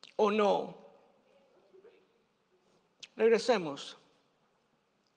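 A middle-aged man speaks with emphasis into a microphone.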